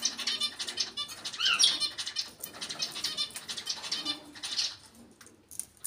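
A parrot chatters and squawks nearby.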